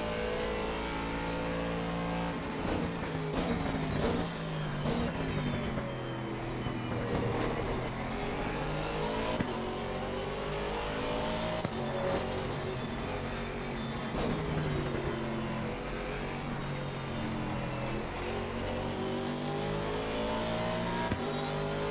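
A race car engine roars, revving up and down through gear changes.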